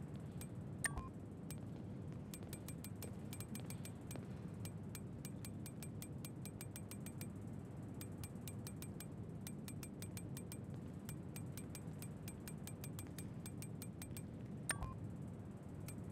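A menu ticks rapidly with short soft clicks.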